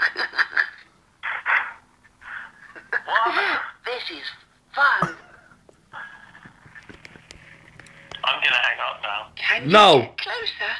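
A boy laughs and talks excitedly close by.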